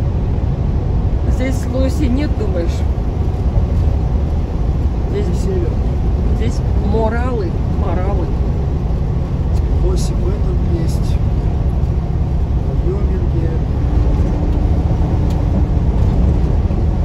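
Tyres hum on the road surface.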